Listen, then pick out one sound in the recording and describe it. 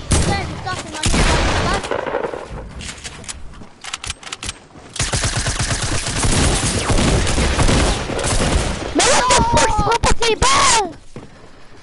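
Gunfire cracks rapidly in a video game.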